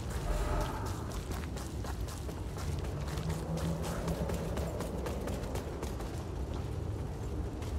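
Footsteps crunch on gravel and stone.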